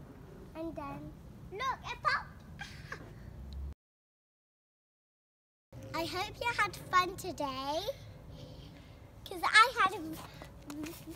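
A young girl talks excitedly and laughs close by.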